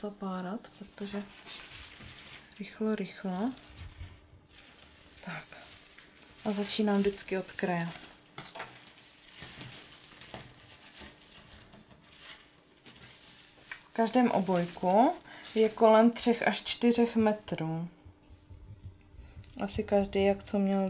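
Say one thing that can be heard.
Plastic and fabric rustle as they are handled.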